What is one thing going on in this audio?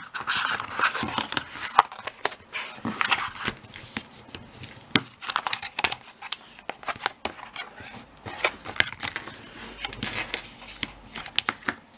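A bone folder scrapes firmly along a paper crease.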